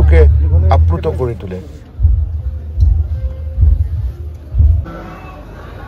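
Men talk close by.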